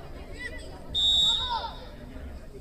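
A referee's whistle blows sharply once.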